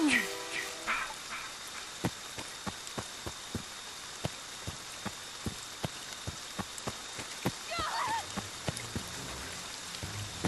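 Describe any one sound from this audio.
Quick footsteps thud over a forest floor.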